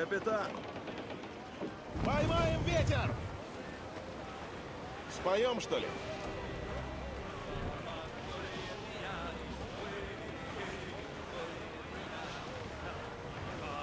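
Waves wash against a wooden ship's hull.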